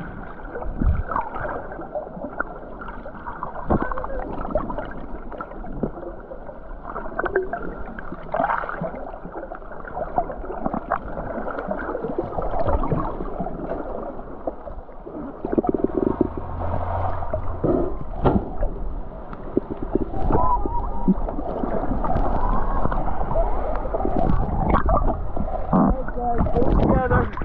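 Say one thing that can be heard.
Muffled water swishes and gurgles, heard underwater.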